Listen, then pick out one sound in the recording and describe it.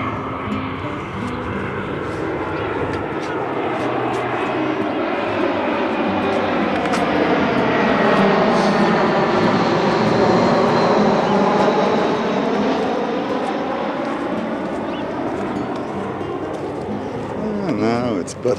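Wind gusts steadily outdoors, rumbling against the microphone.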